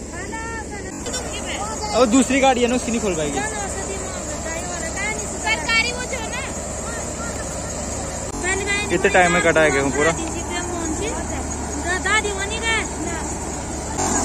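Women talk with one another nearby, outdoors.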